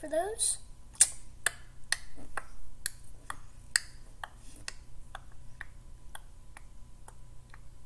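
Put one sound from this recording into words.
Plastic toy bricks click and tap.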